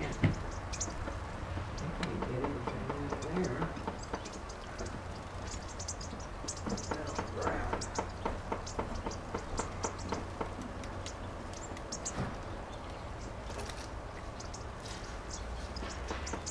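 Small birds chirp in short, high calls.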